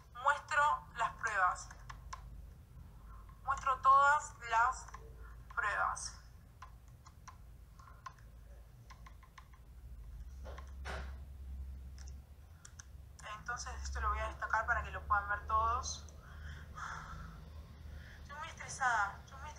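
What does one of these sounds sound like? A young woman talks close to a phone microphone, calmly and in bursts with pauses.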